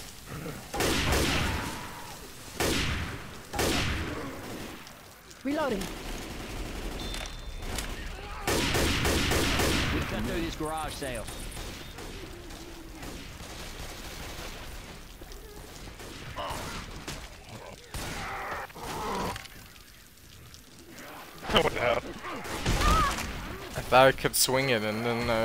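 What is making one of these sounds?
Loud rifle shots crack one after another.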